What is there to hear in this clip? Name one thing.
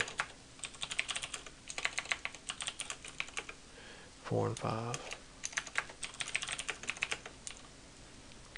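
A keyboard clatters with quick bursts of typing.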